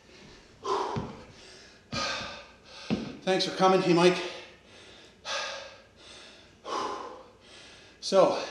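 A man breathes heavily and pants.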